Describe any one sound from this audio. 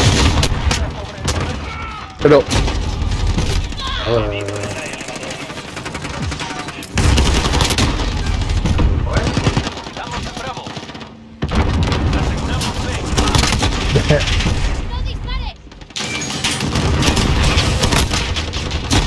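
Gunshots fire in rapid bursts, with loud bangs echoing.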